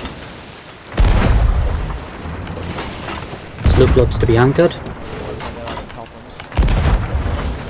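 A cannon fires with a deep boom.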